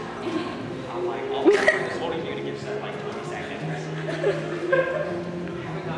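A young boy talks excitedly nearby in an echoing room.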